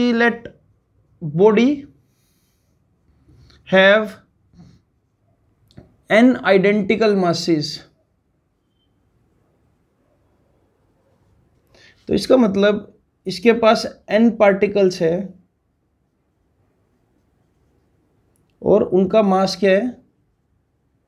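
A young man speaks calmly and clearly, explaining in short bursts with pauses.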